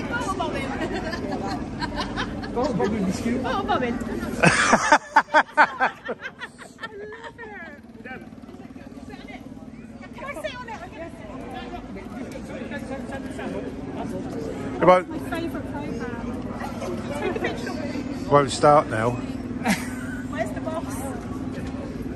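A crowd's voices chatter outdoors.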